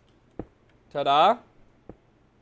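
A young man makes a short, rising vocal sound close to a microphone.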